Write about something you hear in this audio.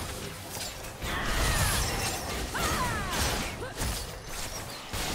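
Spell effects burst and crackle in a fast game fight.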